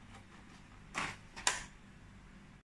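Plastic containers clatter and knock on a hard surface.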